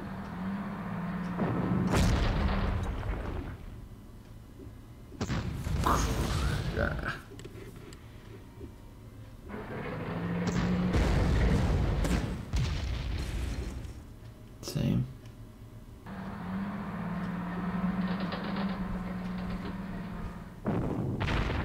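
Tank engines rumble and drone.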